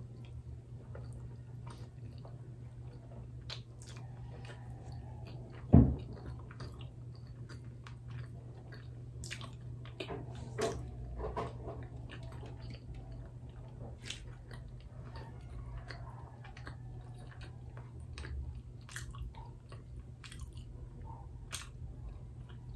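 A young woman chews food noisily, close to the microphone.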